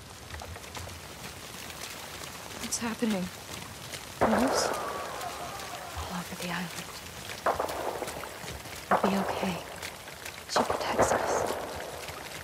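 Twigs snap underfoot.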